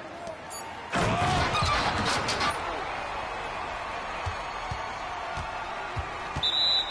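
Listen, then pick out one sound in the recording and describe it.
A crowd cheers in an arena.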